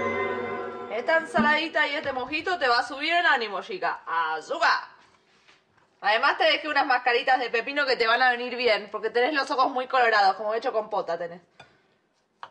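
A young woman sings with a wavering voice.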